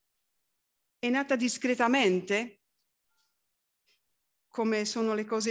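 An elderly woman reads out calmly into a microphone, in pauses.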